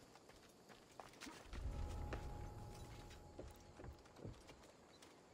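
Soft thuds and scrapes of climbing on rock come in quick bursts.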